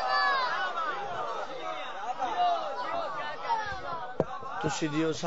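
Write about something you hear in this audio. A seated crowd calls out in response.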